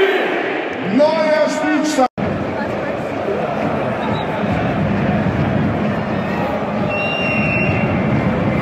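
A large stadium crowd roars steadily all around.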